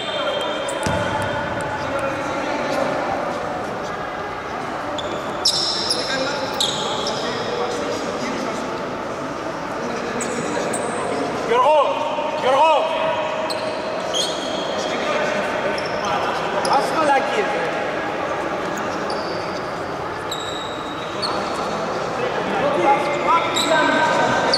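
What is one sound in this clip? Several men talk and call out in a large echoing hall.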